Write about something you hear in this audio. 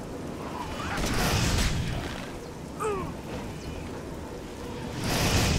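A burst of flame whooshes.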